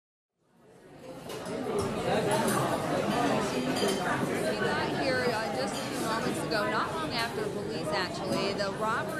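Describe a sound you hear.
A crowd of men and women chatter all around, fading in.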